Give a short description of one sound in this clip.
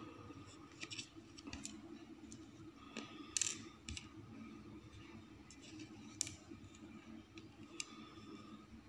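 Small glass stones tap onto paper.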